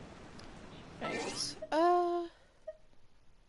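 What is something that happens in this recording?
A magical chime rings out with a bright whoosh.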